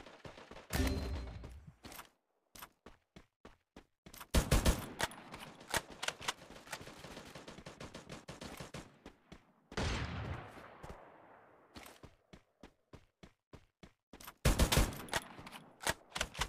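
Rapid gunshots crack in loud bursts.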